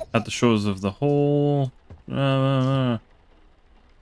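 A young man sings in drawn-out notes close to a microphone.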